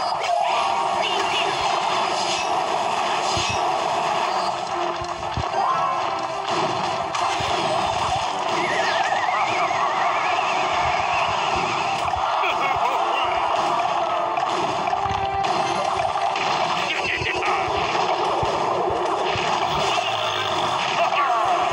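Cartoonish battle sound effects clash, pop and crackle.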